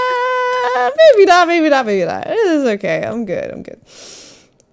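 A young woman laughs into a microphone.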